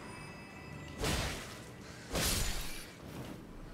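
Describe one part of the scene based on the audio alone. A sword slashes through the air with sharp swooshes.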